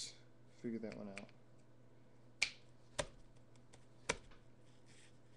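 A knife shaves and scrapes at a piece of wood in sharp strokes.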